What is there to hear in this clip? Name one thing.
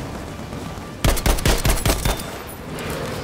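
A rifle fires loud, sharp shots.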